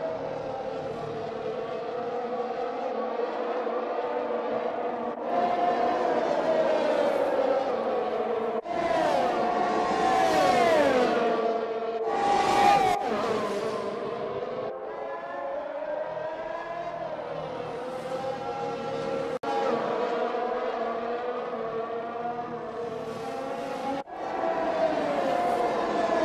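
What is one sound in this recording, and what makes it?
Racing car engines scream at high revs, shifting gears up and down as they pass.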